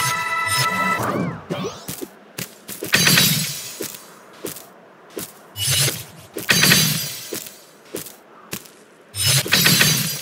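A game character dashes with repeated whooshing bursts.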